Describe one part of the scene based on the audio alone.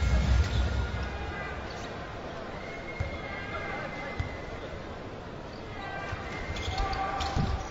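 A large indoor crowd murmurs and cheers in a big echoing arena.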